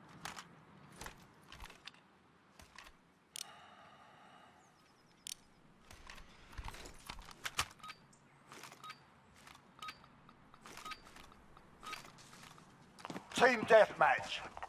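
Metal clicks and rattles as a rifle is handled.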